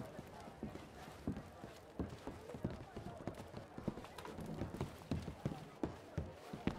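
Footsteps thud on wooden floorboards and stairs.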